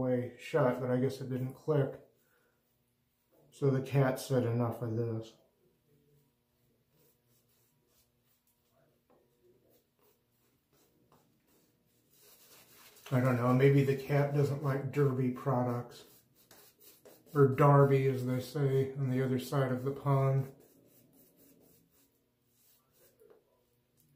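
A shaving brush swishes lather on skin.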